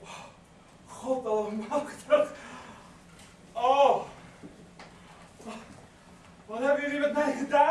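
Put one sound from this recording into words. A woman speaks with feeling, heard from across a hall.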